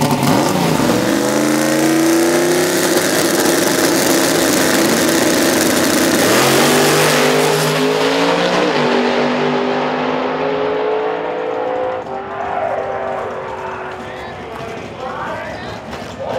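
V8 drag cars launch at full throttle and roar down the strip, fading into the distance.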